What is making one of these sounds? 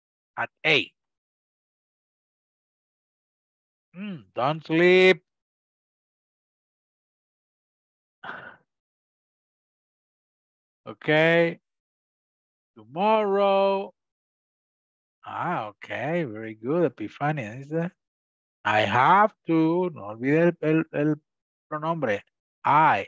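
A woman speaks with animation over an online call, in short bursts with pauses.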